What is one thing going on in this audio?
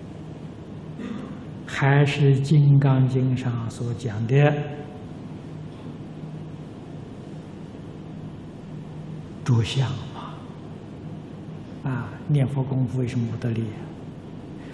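An elderly man speaks calmly through microphones, giving a lecture.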